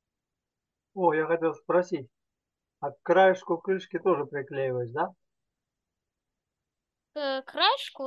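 An elderly man talks calmly, close to the microphone.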